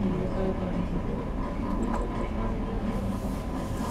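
A small toy skids across a hard floor.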